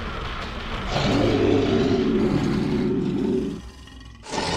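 A creature groans loudly.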